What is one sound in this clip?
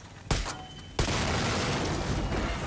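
An explosion booms and roars close by.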